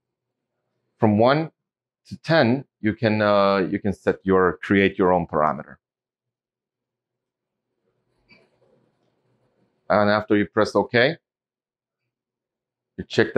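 A man speaks calmly nearby, explaining.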